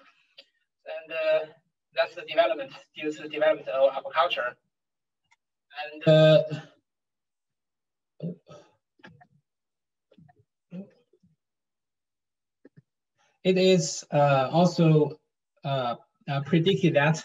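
A man speaks calmly through an online call microphone, with pauses.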